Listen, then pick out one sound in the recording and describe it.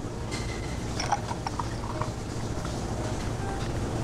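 Milk pours over ice in a glass.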